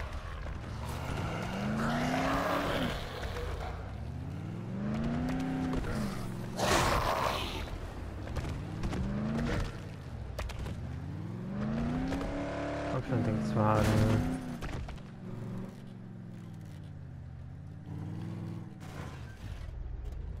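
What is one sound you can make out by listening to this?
A car engine revs up and down repeatedly as gears shift.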